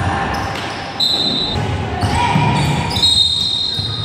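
Sneakers squeak on a wooden court in a large echoing hall.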